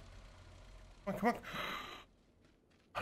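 A man speaks briefly into a close microphone with animation.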